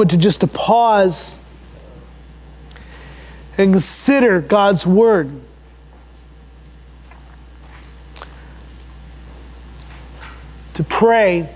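An elderly man speaks slowly and deliberately through a microphone, with long pauses.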